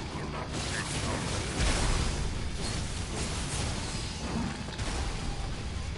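Blades clash and strike with sharp hits.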